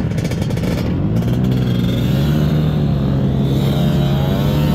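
A scooter engine revs up and rises in pitch as it rides off.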